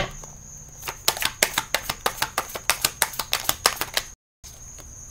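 Playing cards riffle and flutter quickly as they are shuffled.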